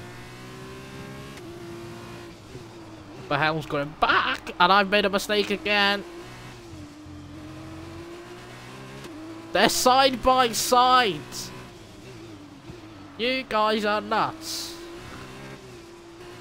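A racing car engine drones steadily, rising and falling in pitch with the gears.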